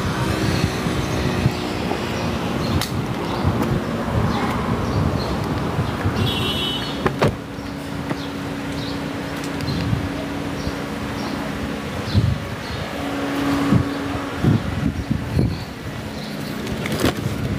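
Wind blows outdoors against a close microphone.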